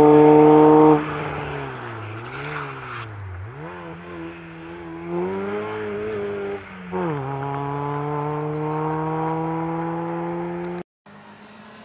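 A rally car engine revs in the distance and fades away.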